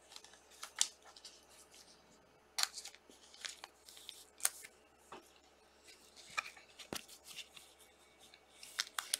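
Plastic card sleeves rustle and click as cards are handled close by.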